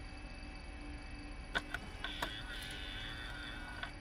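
A disc slides into a player and clicks.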